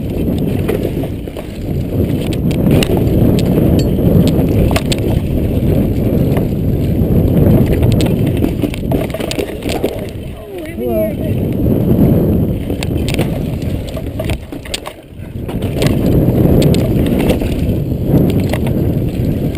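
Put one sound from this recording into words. A bike's frame and chain rattle over bumps.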